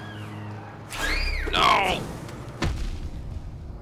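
A loud explosion bursts with crackling.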